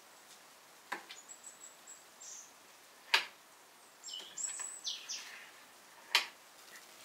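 A knife taps sharply against a metal baking tray.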